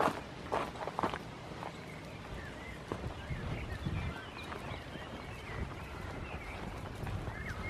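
A goat trots briskly across soft grass.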